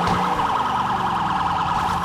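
A car thumps over a curb with a jolt.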